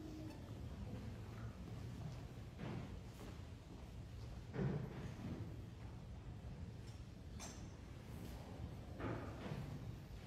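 A metal cup clinks softly against metal.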